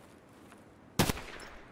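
A gun fires a single sharp shot.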